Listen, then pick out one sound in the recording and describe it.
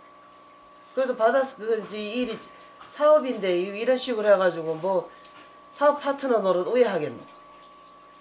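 A middle-aged woman speaks nearby with feeling.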